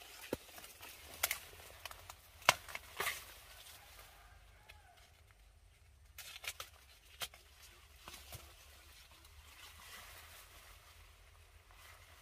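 Leaves rustle as a person moves through tall plants.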